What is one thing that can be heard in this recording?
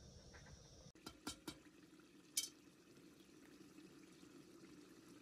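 Hot liquid sizzles softly in a pot.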